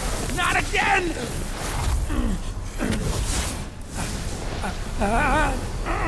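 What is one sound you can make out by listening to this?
Heavy debris crashes down with a deep rumble.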